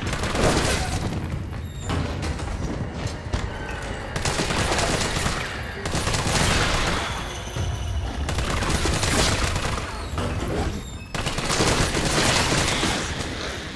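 A creature growls and snarls close by.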